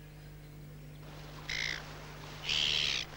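Water ripples gently nearby.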